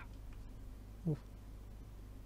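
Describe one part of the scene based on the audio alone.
A wooden crate is lifted with a single dull thud.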